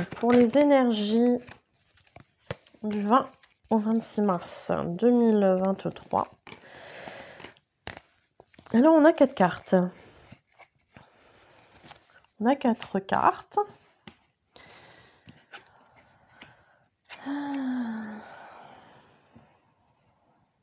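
Playing cards slide and tap softly as they are laid down one by one.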